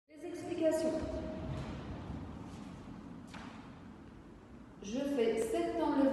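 A woman speaks close by.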